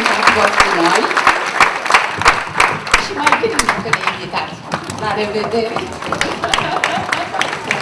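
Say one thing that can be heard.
An elderly woman speaks into a microphone over loudspeakers.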